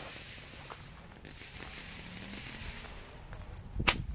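A firework fuse fizzes and hisses.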